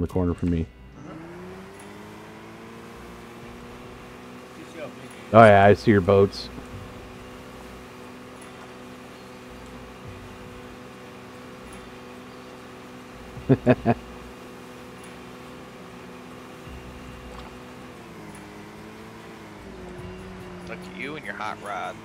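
A boat's outboard motor hums steadily, then slows down.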